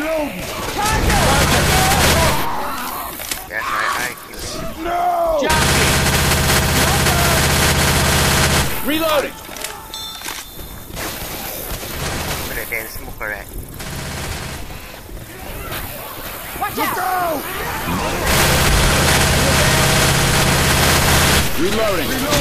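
Automatic gunfire rattles in rapid, loud bursts.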